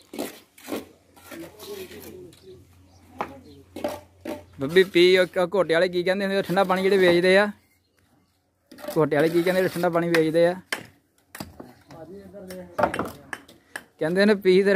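A trowel taps and scrapes on bricks.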